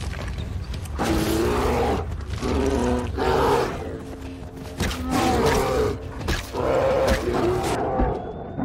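A bear growls and roars up close.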